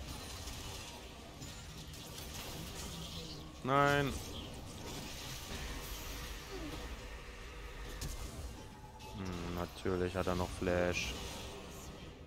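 Fantasy combat sounds whoosh and crackle as spells are cast.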